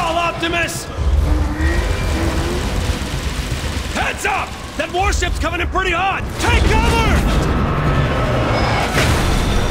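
Low explosions rumble and boom.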